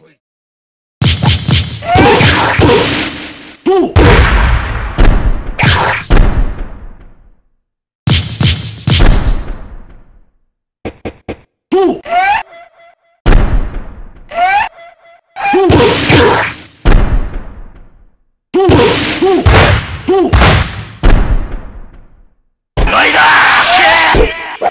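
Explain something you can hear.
Punches and kicks land with sharp, heavy thuds in bursts.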